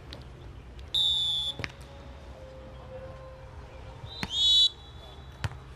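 A referee's whistle blows sharply twice.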